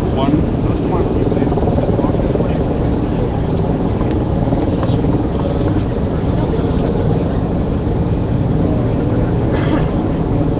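A crowd of men and women talks and shouts outdoors.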